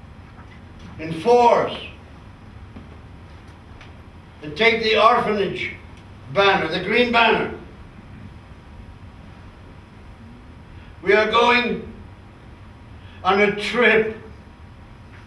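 An elderly man speaks in short bursts.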